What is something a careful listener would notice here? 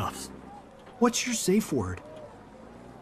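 A young man speaks casually, close by.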